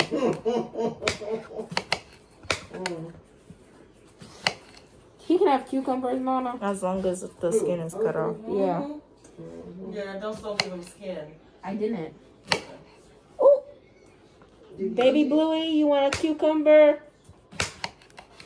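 A knife chops through limes on a cutting board with sharp taps.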